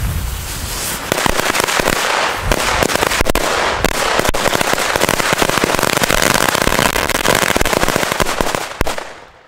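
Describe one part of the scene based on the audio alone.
A string of firecrackers bangs and crackles rapidly.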